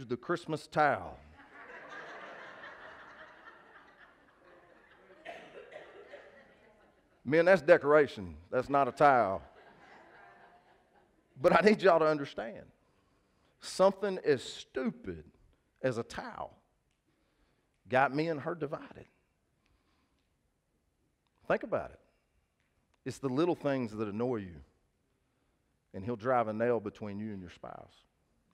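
A man speaks calmly into a headset microphone, pausing between phrases.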